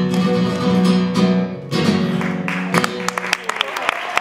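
A guitar plays a flamenco chord.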